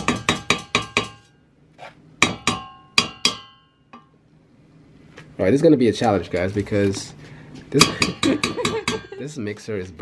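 A spoon knocks against a metal pot with short, ringing clinks.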